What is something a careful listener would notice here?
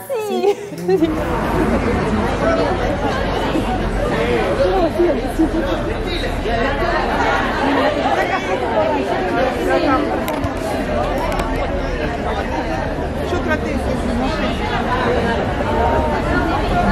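A large crowd chatters and cheers loudly outdoors.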